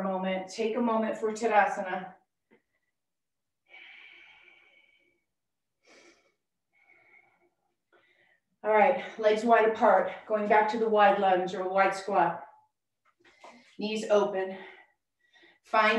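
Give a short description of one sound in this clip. A woman speaks calmly and clearly into a microphone, giving instructions.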